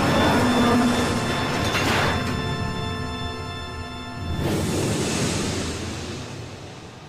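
Water splashes and churns loudly.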